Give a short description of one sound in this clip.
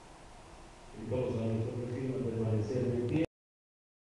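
A group of men and women sing together.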